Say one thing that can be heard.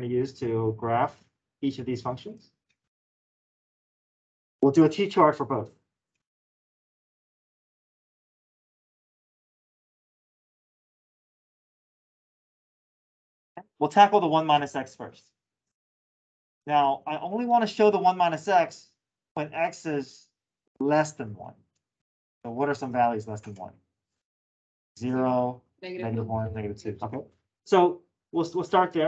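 A man explains calmly, heard through a microphone on an online call.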